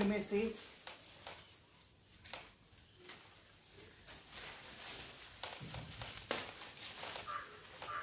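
Leaves rustle as a branch is shaken.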